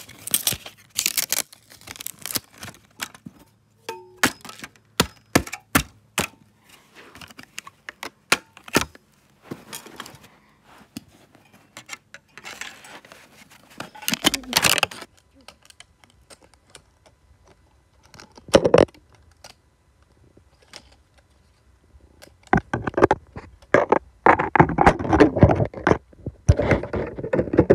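Plastic discs crack and snap as they are broken apart.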